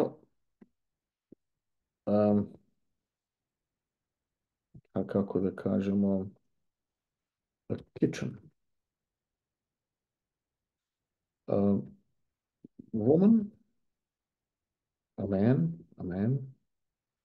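A middle-aged man speaks calmly in short phrases into a microphone.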